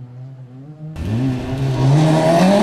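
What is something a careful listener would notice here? A second rally car engine roars loudly up close.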